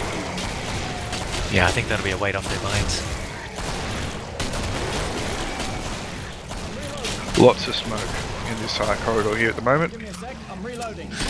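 Gunshots ring out in short bursts, echoing in a tunnel.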